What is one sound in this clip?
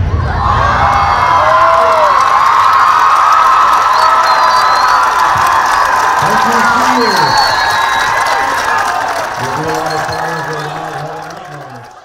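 A crowd of young people cheers and screams loudly outdoors.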